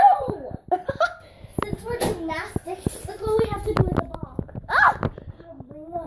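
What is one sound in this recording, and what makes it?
A young girl laughs close to the microphone.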